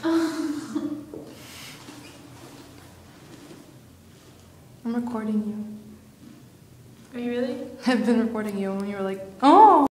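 A young woman talks nearby.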